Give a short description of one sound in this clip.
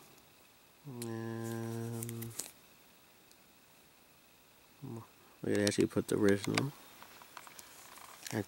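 Small plastic pieces click softly as fingers handle them.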